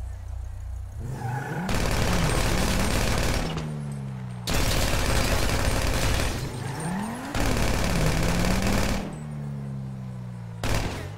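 A car engine revs and roars as the car speeds up and slows down.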